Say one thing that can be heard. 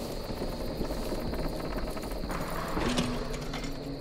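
Heavy double doors swing open with a creak.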